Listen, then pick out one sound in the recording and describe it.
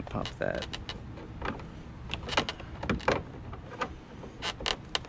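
Plastic trim clicks and rattles as it is pulled by hand.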